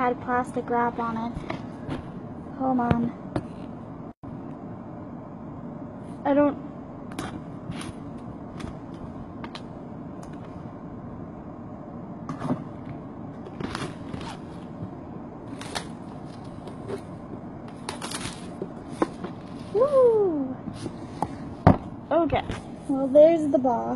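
A cardboard box taps and rustles as it is handled.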